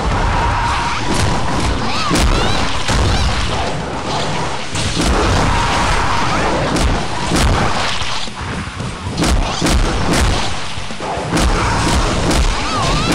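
Sword slashes whoosh and strike again and again.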